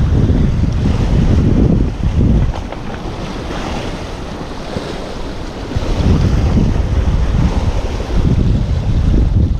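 Waves wash and splash against rocks.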